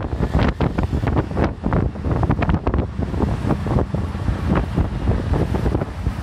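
Wind buffets loudly against an open vehicle.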